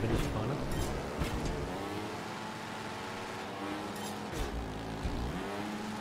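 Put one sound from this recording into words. Motorbike tyres thud onto wooden ramps.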